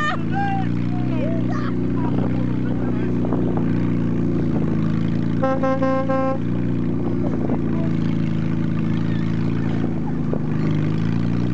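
A board scrapes along a dirt track.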